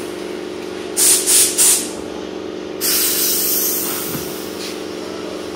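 A pneumatic tool hisses in bursts.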